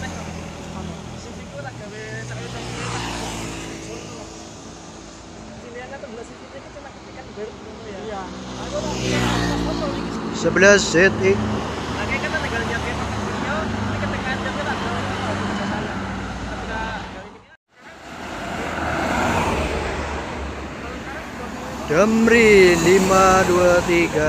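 Heavy vehicles roar past on a road.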